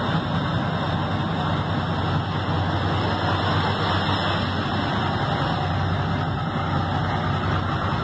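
A big truck engine idles with a steady low rumble.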